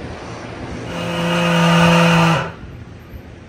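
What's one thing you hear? A tire changer's turntable motor hums as it turns a wheel.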